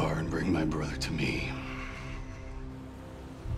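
A man speaks tensely into a phone.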